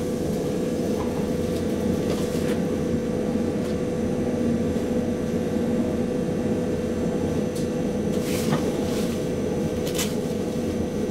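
Train wheels click and rattle over rail joints.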